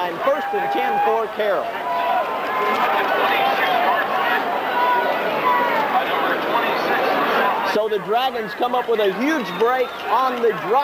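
A large crowd cheers and shouts in a stadium.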